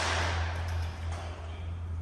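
An aluminium ladder rattles as a man climbs it.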